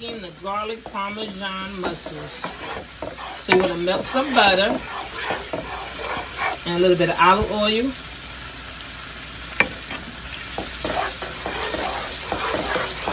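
A wooden spatula scrapes across a pan.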